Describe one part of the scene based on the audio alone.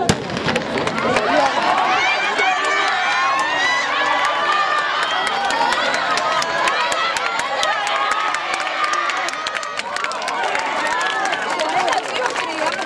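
A crowd of spectators cheers and shouts excitedly.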